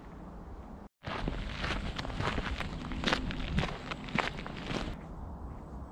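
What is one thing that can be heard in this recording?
Boots crunch on a gravel path.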